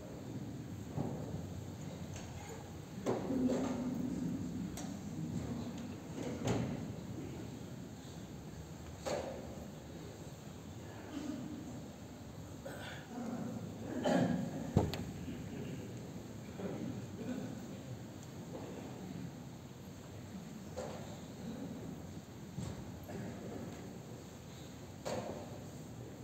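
Footsteps and rustling clothing sound as people kneel and stand.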